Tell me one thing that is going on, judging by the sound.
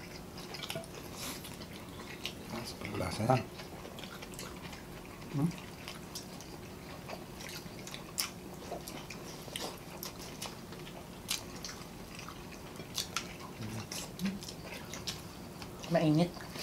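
Hands crunch and tear crispy food.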